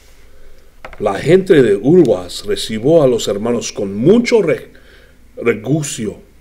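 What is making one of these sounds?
A man reads aloud calmly, close by.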